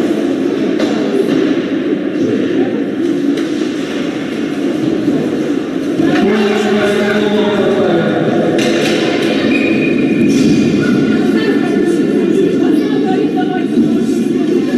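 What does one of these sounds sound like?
Skates scrape across the ice.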